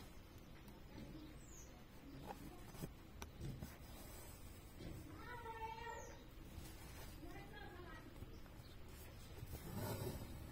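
Thread rasps softly as it is pulled through taut fabric.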